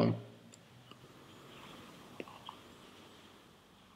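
A man softly draws breath through an electronic cigarette.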